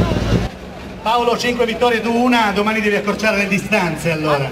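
A man speaks with animation over a loudspeaker.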